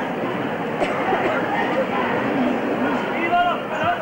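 A crowd of men and women chatters and murmurs outdoors.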